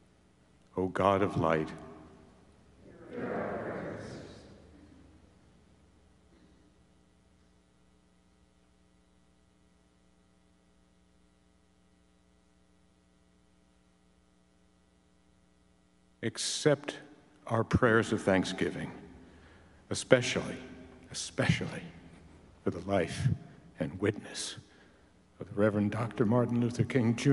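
An older man speaks slowly and deliberately into a microphone.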